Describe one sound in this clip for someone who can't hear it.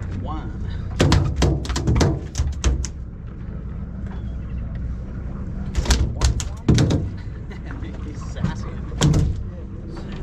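A fish thumps and flaps against a boat deck.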